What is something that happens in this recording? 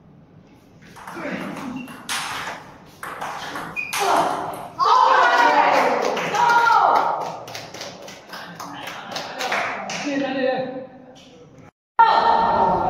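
A ping-pong ball clicks against paddles and a table.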